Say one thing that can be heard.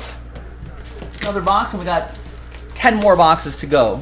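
Plastic wrap crinkles as it is torn off a box.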